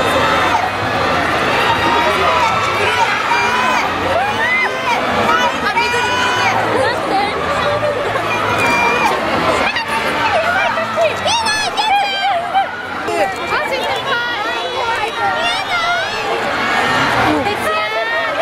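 Young women in the crowd shriek and squeal with excitement.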